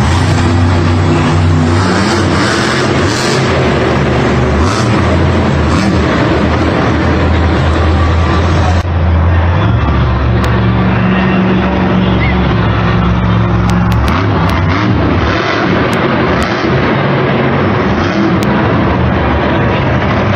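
A monster truck engine roars loudly, revving up and down.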